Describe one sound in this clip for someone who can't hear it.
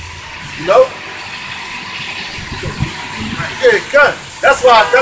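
A man speaks loudly and forcefully nearby.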